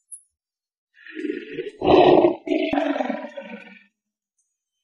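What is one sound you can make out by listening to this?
A lion roars.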